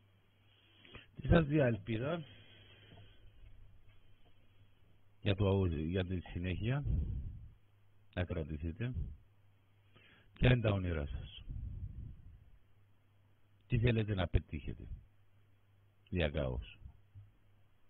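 A middle-aged man speaks with animation into a microphone over an online call, in short bursts with pauses.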